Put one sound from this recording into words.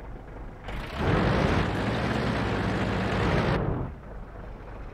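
A tank engine rumbles and roars.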